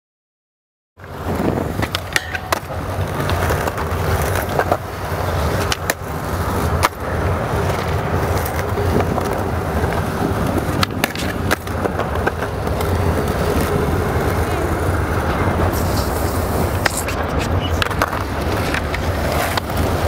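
Skateboard wheels roll and rumble over smooth concrete.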